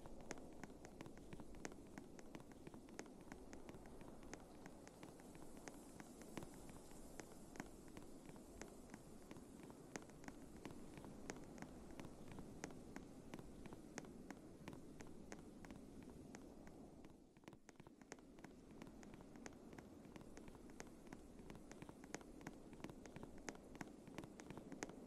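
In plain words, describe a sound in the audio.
Quick, regular footsteps crunch as a climber scrambles up rock.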